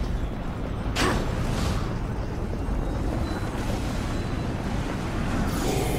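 A magic portal whooshes and swirls.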